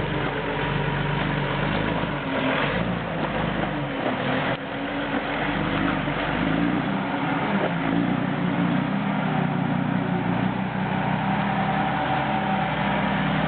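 Large tyres crunch over rocks and dirt.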